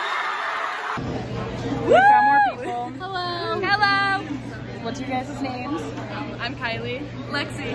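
Teenage girls talk and laugh excitedly close by.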